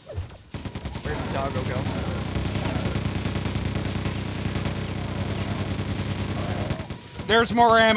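A rapid-fire gun shoots in quick, steady bursts.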